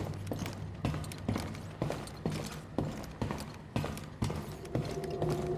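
Footsteps clank on a metal floor.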